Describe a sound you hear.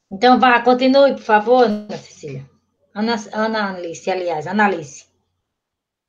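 An elderly woman speaks with animation through an online call.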